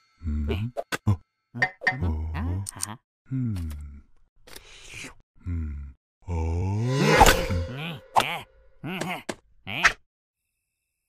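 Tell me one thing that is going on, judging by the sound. A cartoon vampire speaks with animation in a high, squeaky voice.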